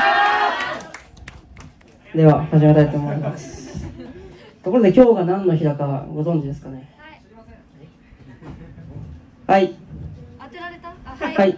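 A young man speaks casually into a microphone over loudspeakers.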